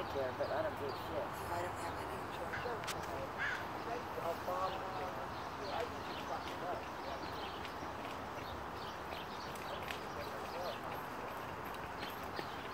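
A gaited horse's hooves beat on a dirt track.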